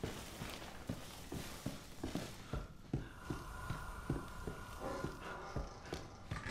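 Slow footsteps thud on wooden floorboards.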